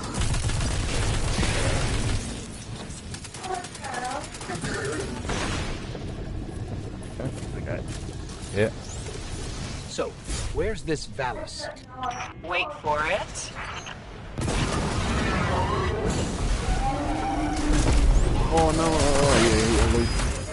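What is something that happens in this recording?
Explosions rumble loudly.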